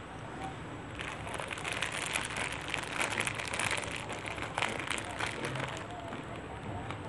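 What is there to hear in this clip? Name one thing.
Plastic wrap crinkles as it is handled.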